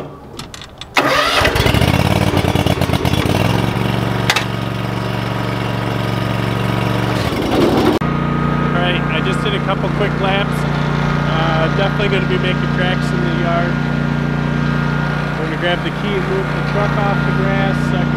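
A riding mower's engine starts up and runs with a steady loud drone.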